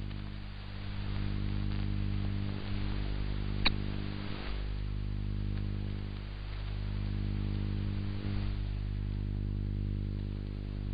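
A radio receiver gives out a steady, low buzzing hum.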